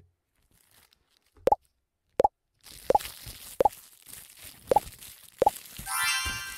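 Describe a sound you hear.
Short popping game blips sound as buttons are tapped.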